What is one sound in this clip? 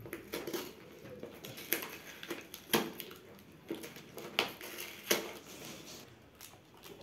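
A cardboard box rustles and taps as it is handled.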